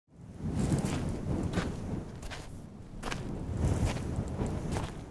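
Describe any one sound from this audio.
Boots crunch slowly on gravel.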